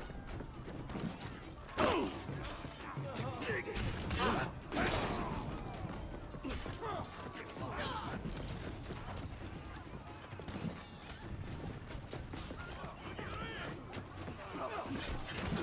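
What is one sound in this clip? A crowd of soldiers shouts and clashes in battle.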